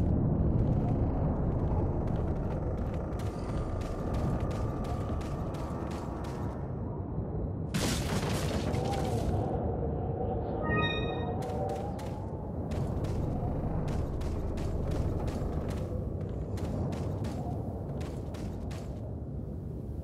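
Footsteps crunch steadily over dirt and gravel.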